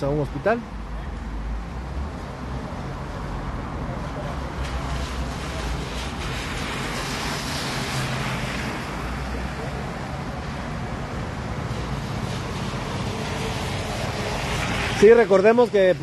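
A bus engine idles with a low rumble nearby.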